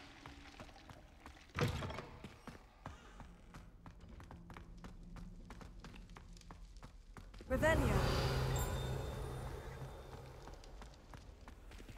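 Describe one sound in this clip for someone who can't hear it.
Footsteps run quickly across a stone floor.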